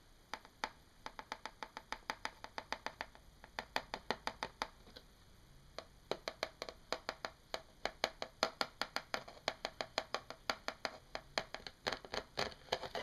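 Fingernails tap and scratch rapidly on a plastic mesh.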